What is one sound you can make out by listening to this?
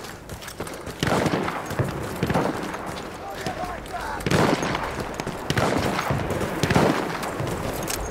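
Loud explosions boom nearby, one after another.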